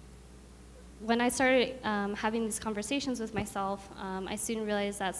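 A young woman speaks calmly into a microphone through a loudspeaker in a large room.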